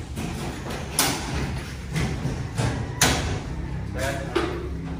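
A ceiling panel knocks against a metal frame.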